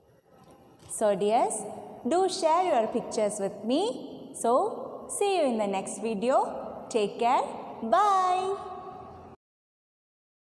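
A young woman speaks cheerfully and close.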